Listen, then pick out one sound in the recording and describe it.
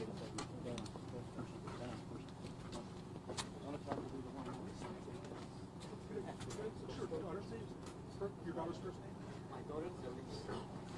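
Several men and women murmur quietly nearby.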